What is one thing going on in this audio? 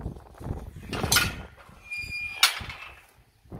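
A metal gate latch clanks.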